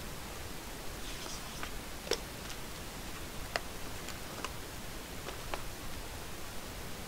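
Boxes in plastic wrap knock and crinkle as they are handled.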